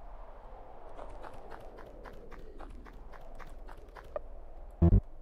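Soft footsteps patter at a steady pace.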